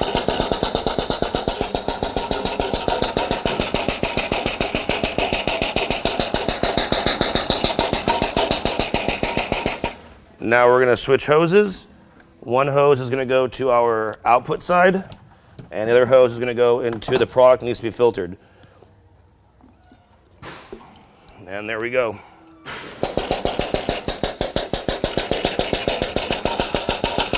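A machine pump runs with a fast, steady pulsing rattle.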